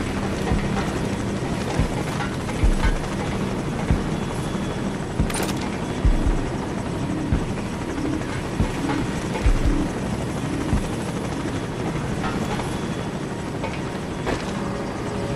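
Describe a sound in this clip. Heavy footsteps clank on metal stairs and a walkway.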